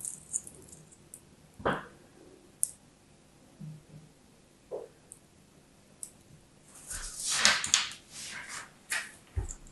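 Chunks of sand crumble and patter down.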